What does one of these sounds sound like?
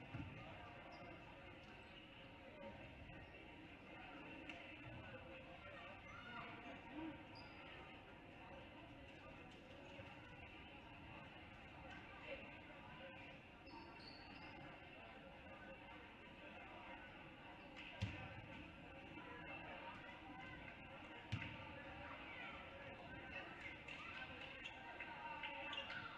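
A crowd murmurs and chatters throughout a large echoing gym.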